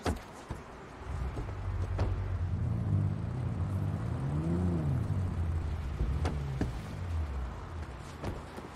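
A vehicle engine rumbles, revs up and settles.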